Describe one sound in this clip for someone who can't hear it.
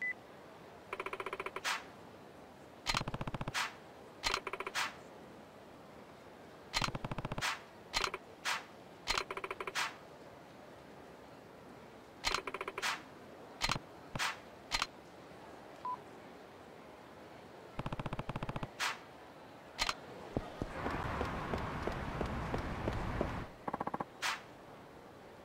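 Short electronic blips chatter in quick bursts.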